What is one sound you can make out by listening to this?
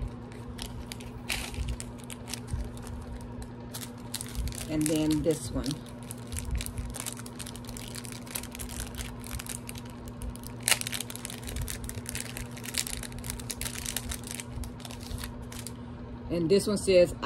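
Plastic packaging crinkles and rustles as hands unwrap it.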